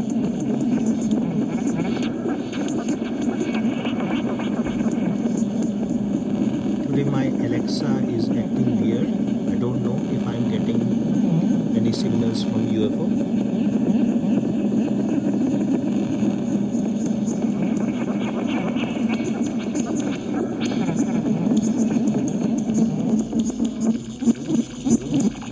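A small smart speaker plays sound close by.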